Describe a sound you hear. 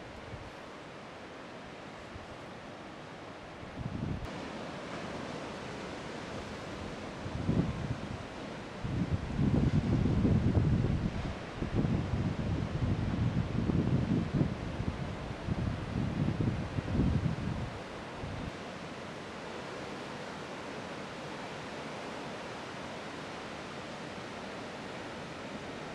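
Ocean waves break and surf rushes steadily in the distance.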